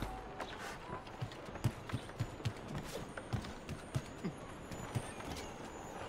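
Footsteps patter across a tiled roof.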